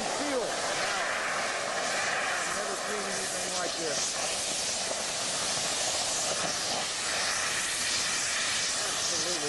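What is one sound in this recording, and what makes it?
A rocket motor roars.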